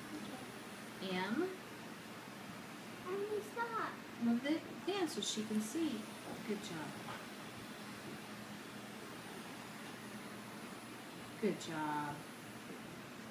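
A woman talks calmly and gently close by.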